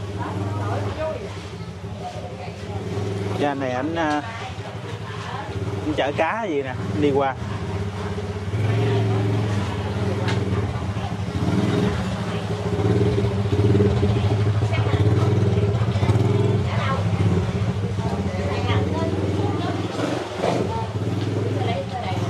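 Tyres splash through shallow floodwater.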